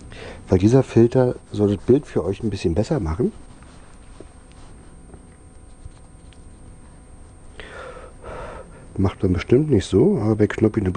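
An elderly man talks calmly into a clip-on microphone, close by.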